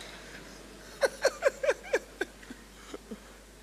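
A man laughs into a microphone in short bursts.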